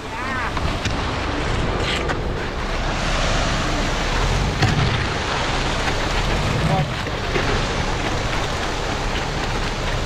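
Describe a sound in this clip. Rakes scrape through wet concrete.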